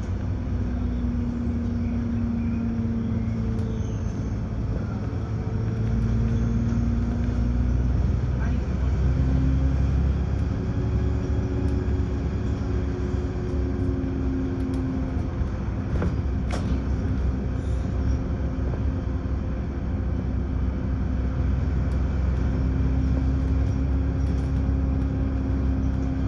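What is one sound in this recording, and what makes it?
A bus engine hums and drones steadily, shifting pitch as the bus speeds up and slows.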